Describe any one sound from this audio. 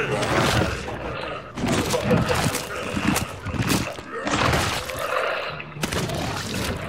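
A giant creature crunches and tears flesh with wet, gory squelches.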